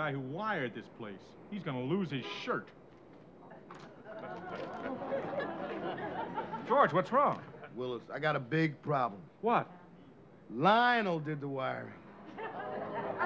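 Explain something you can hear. An older man answers in a gruff voice, close by.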